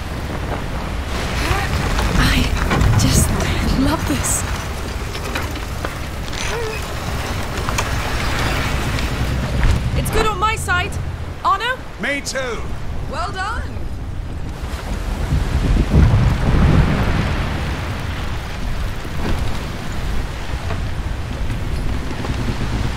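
Waves wash and splash against a wooden ship's hull.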